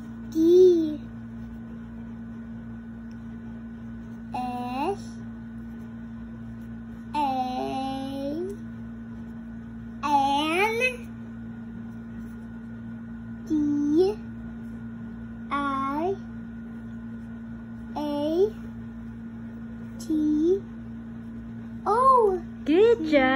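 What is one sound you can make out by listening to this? A young child speaks aloud in short, drawn-out bursts, close by.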